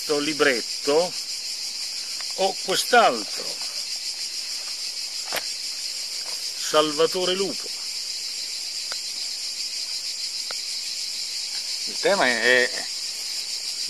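An elderly man speaks calmly and close by, in short bursts.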